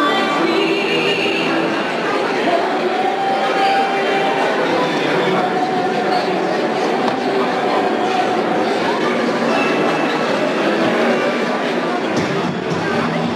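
A large audience murmurs and chatters in a big hall.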